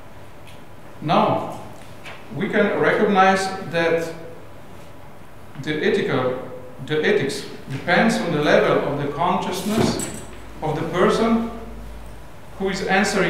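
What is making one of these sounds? A man speaks calmly into a microphone, heard through loudspeakers in an echoing hall.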